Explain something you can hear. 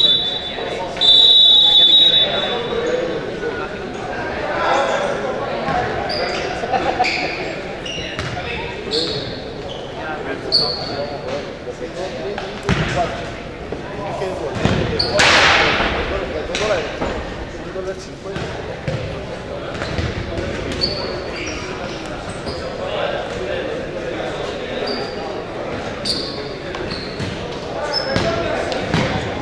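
Sneakers squeak sharply on a gym floor, echoing in a large hall.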